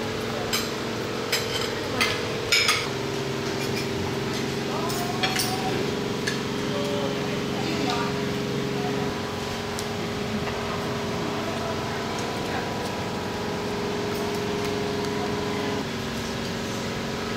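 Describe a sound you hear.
Cutlery clinks and scrapes against plates.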